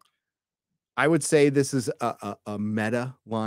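A man speaks with animation, close into a microphone.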